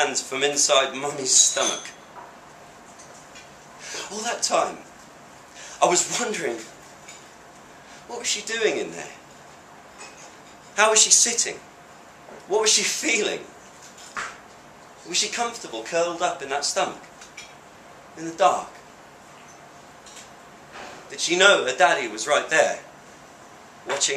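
A young man reads aloud with expression into a microphone, in short phrases with pauses.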